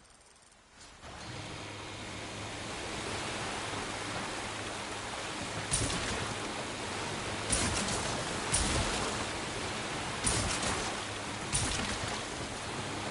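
Water churns and rushes under a speeding motorboat.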